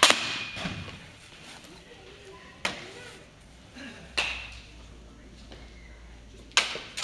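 A baseball smacks sharply into a catcher's mitt again and again, echoing in a large hall.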